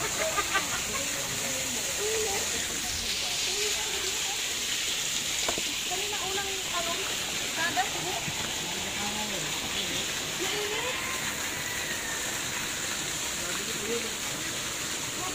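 Water pours steadily from a pipe and splashes into a pool.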